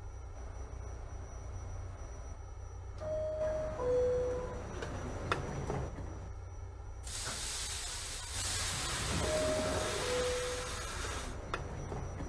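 Subway car doors slide shut.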